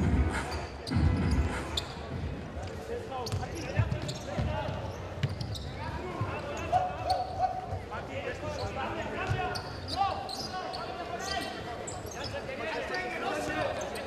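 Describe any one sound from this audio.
A ball thuds as players kick it across a hard floor.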